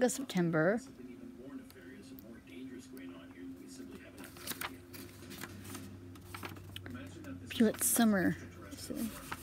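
Paper pages rustle and flip as a book's pages are turned.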